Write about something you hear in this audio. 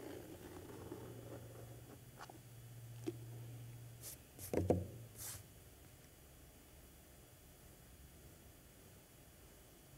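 A pen scratches softly on paper.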